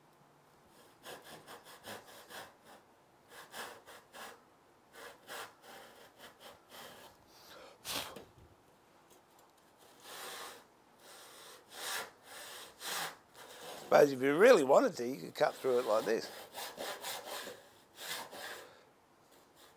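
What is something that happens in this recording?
A hand saw cuts through wood in quick, rhythmic strokes.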